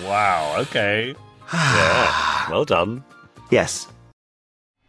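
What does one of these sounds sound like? A man speaks calmly, close up.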